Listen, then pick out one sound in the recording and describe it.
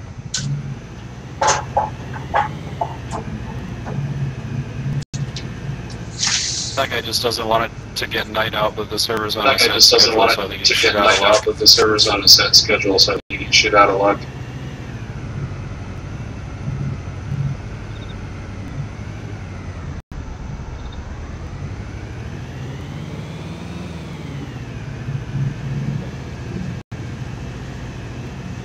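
Heavy tyres rumble over uneven ground.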